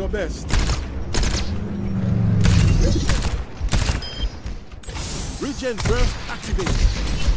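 A heavy gun fires in bursts of loud shots.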